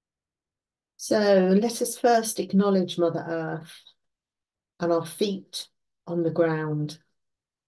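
An older woman speaks calmly into a microphone over an online call.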